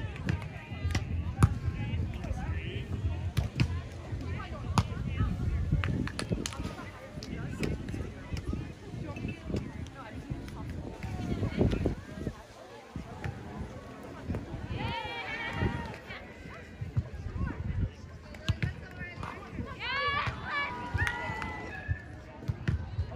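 A volleyball is struck with sharp thumps, some distance away.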